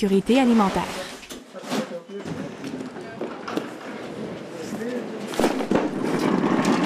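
Cardboard boxes thump and scrape as they are set down and slid.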